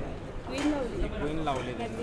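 Wooden carrom pieces click softly against each other on a board.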